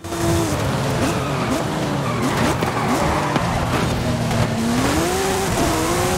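Racing car engines roar and rev up and down.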